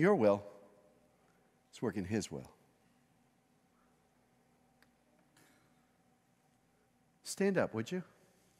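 A middle-aged man speaks calmly into a microphone in short phrases, with long pauses.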